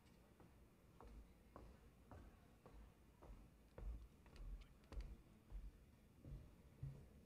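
Footsteps cross a stage.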